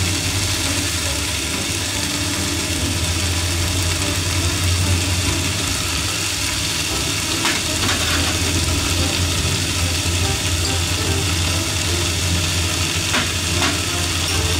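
Food sizzles steadily in a frying pan.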